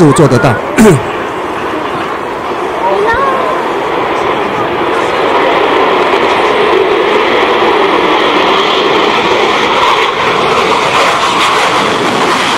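A jet engine roars steadily through loudspeakers.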